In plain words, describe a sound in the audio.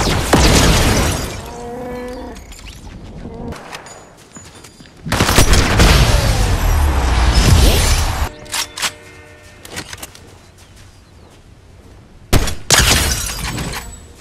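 Rifle shots crack in short bursts.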